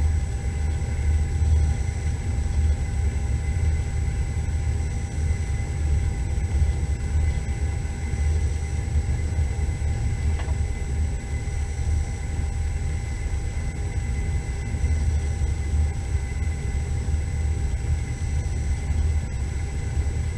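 Tyres rumble on a snowy road.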